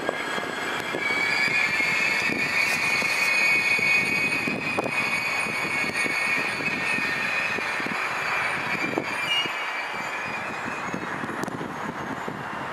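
Train brakes squeal with a steady high whine.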